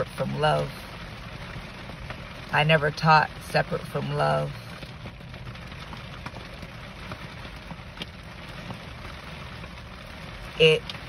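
Heavy rain patters steadily on a car's windshield and roof.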